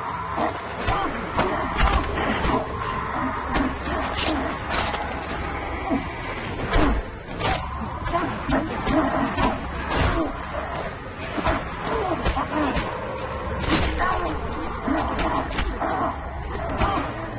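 Men grunt and groan as they fight.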